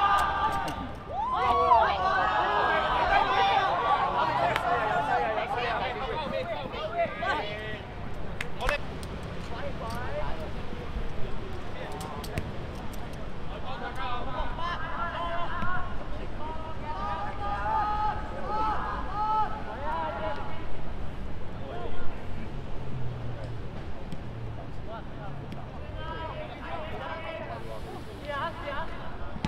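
Children shout and call out across an open playing field.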